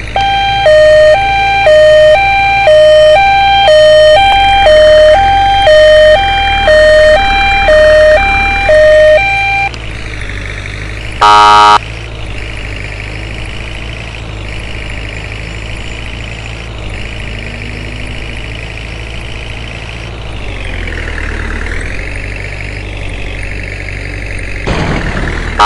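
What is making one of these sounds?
An engine hums steadily as a vehicle drives.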